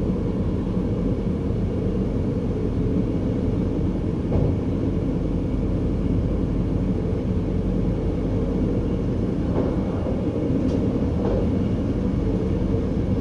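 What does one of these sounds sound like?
A train rumbles steadily along the tracks, its wheels clattering on the rails.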